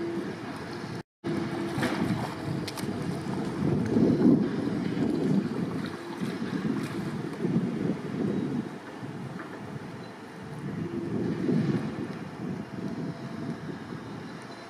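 A paddle splashes in the water.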